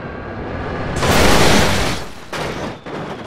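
A train crashes loudly into a bus.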